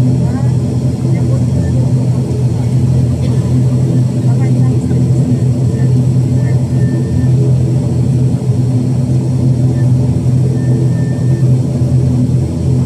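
A turboprop engine drones loudly and steadily close by.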